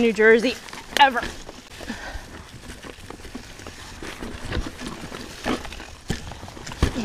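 A bicycle frame rattles and knocks over rocks.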